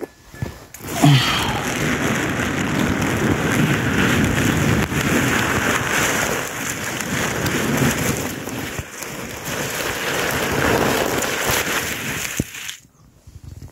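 Strong wind gusts and buffets loudly through dry grass close by, outdoors.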